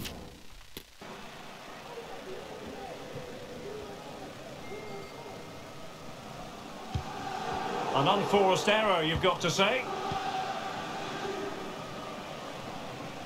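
A stadium crowd murmurs and roars steadily.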